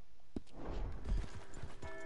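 A horse's hooves thud slowly on dirt.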